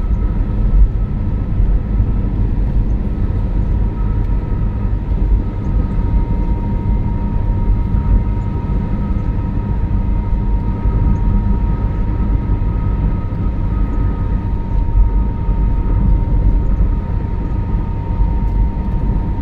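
A car engine and tyres rumble steadily on a smooth road.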